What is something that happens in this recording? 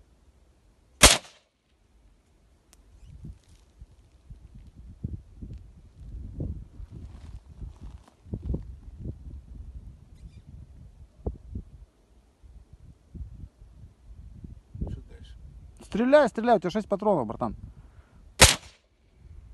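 A rifle fires single loud, sharp shots outdoors.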